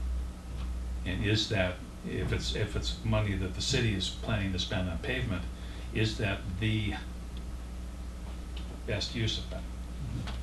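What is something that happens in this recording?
A man speaks calmly across a quiet room.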